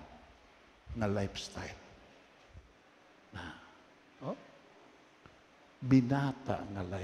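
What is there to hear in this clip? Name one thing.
An elderly man preaches with animation through a microphone in a large echoing hall.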